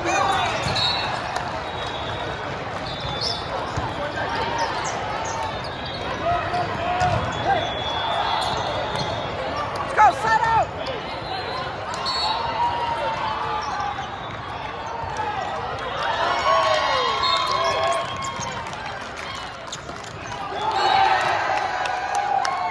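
A crowd of players and spectators chatters and shouts across a large echoing hall.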